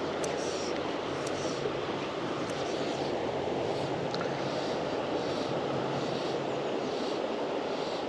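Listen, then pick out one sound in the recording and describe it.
A river rushes steadily over rocks outdoors.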